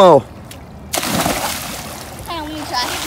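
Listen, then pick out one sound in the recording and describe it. A child jumps into a swimming pool with a big splash.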